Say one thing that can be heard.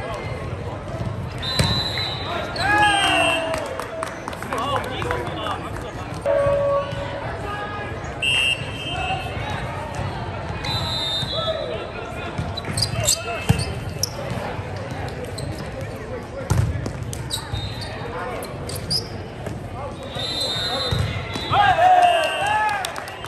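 Players and spectators shout and call out, echoing in a large hall.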